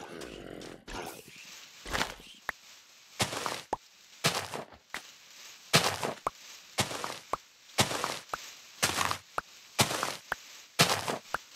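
Blocks of hay are broken and placed with rustling, crunching thuds.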